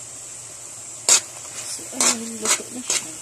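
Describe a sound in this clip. A metal spoon scrapes and clinks against a metal pan.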